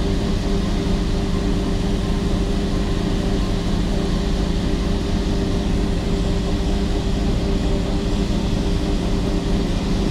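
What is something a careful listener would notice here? Grain pours and hisses steadily into a wagon.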